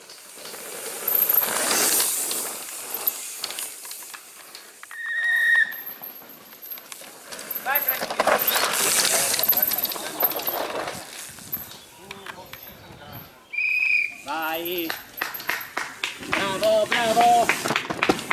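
Mountain bike tyres skid and crunch over a dirt trail as riders rush past.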